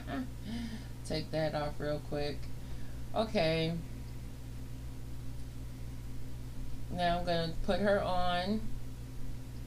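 A woman talks close by, casually and with animation.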